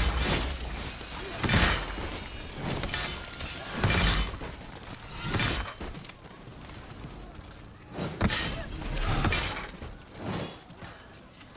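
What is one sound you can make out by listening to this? Swords clash and slash against bodies in a melee.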